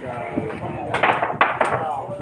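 A cue strikes a billiard ball sharply.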